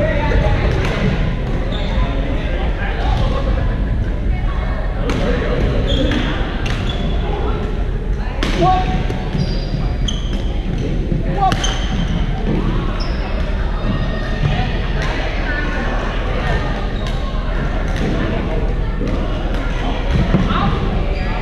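Players call out to each other across the courts.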